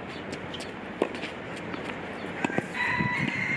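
A tennis ball is struck sharply with a racket.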